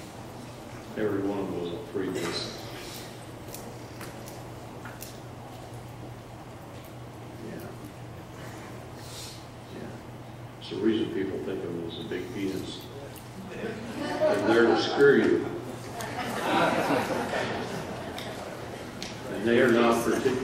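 A middle-aged man speaks through a microphone in a large hall, with pauses.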